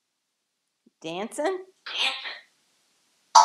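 A parrot makes warbling, chattering calls close by.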